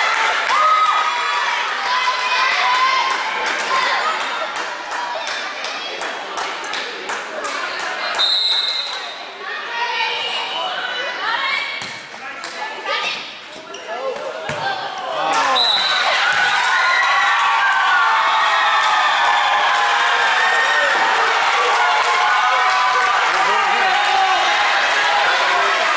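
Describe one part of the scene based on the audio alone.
Girls shout and cheer across a large echoing gym.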